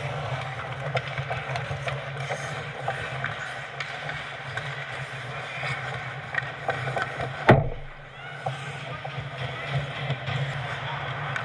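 Hockey sticks clack against the puck and each other.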